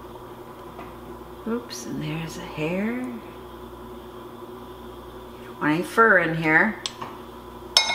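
A metal fork scrapes and pokes at food in a pot.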